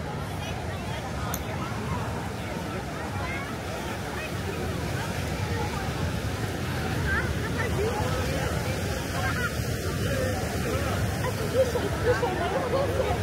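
Many people chatter on a busy beach outdoors.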